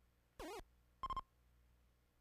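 A retro video game gives a short electronic beep.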